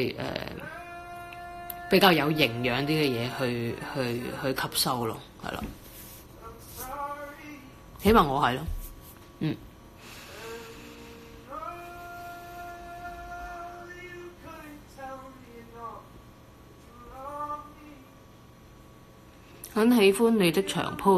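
A woman talks quietly and casually, close to a phone microphone.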